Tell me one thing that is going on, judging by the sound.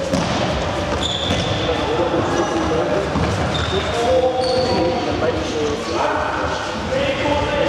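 A ball thumps as players kick it.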